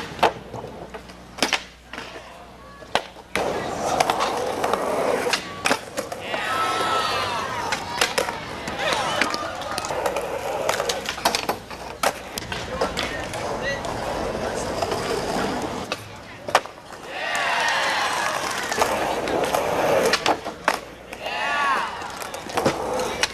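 A skateboard clacks sharply as it lands on the ground.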